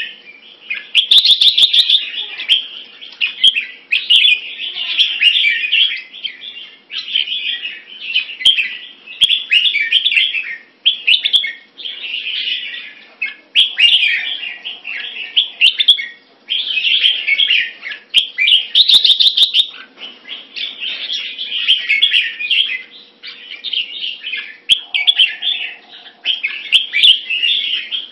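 A small songbird sings loud, rapid trills and chirps close by.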